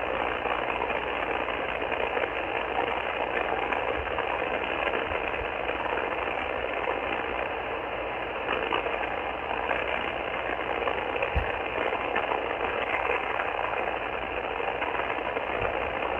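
A radio receiver hisses with steady static through its small loudspeaker.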